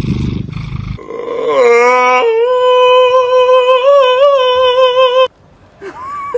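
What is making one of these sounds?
A cat lets out a long, loud yowl.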